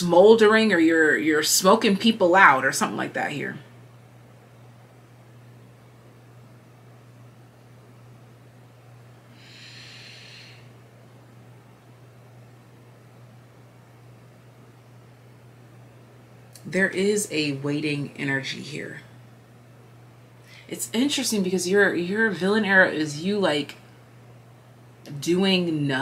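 A young woman talks calmly and close to a microphone, with pauses.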